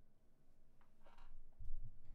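A young person makes a short sound with the voice close to a microphone.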